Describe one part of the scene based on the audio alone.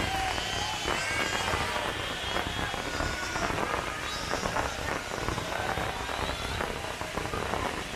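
Fireworks crackle and pop rapidly without a break.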